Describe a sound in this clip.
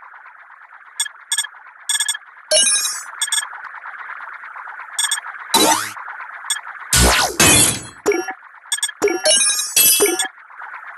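Short game chimes and zaps ring out as tiles are matched.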